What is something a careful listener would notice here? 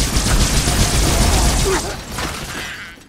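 Energy guns fire in rapid bursts with crackling blasts.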